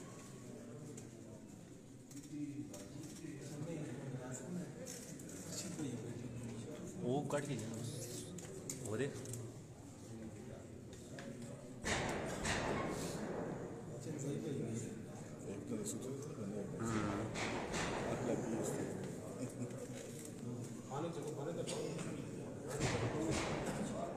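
Several men talk in the background of a crowded room.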